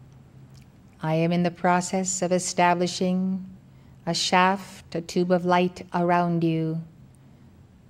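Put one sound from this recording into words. A woman speaks slowly and calmly into a microphone.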